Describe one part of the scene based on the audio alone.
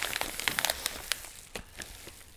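A padded paper envelope crinkles and rustles as hands handle it.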